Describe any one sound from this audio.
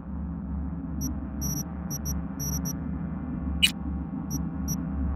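Short electronic beeps blip as a menu selection moves.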